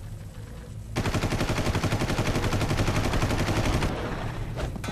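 Rapid gunfire rattles in a burst.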